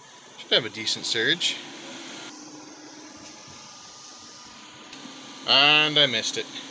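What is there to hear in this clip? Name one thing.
A cooling fan hums steadily.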